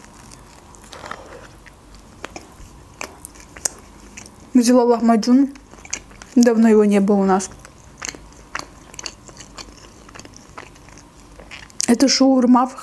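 A young woman chews food with soft wet smacking close to a microphone.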